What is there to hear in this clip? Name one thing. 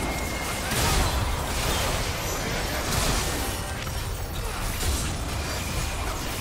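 Magical spells blast and crackle in a fast video game battle.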